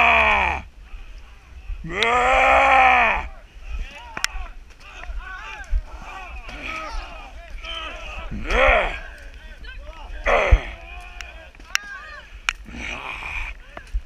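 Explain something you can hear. A crowd of men yell battle cries outdoors.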